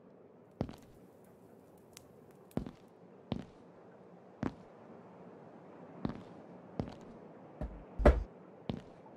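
Fireballs whoosh past and burst with short thuds.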